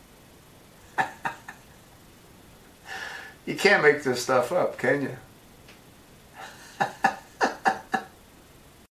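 An elderly man laughs heartily, close by.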